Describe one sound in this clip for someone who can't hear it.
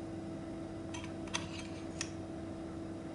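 A plastic cuvette clicks into a holder.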